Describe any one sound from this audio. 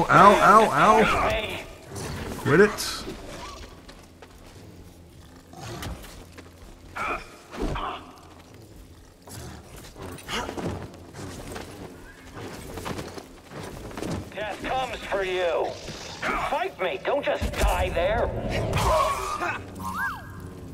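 Blades clash with sharp metallic hits.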